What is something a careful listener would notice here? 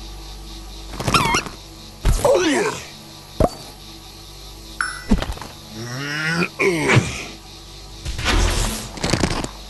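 Whooshing, zapping effects burst out as attacks hit.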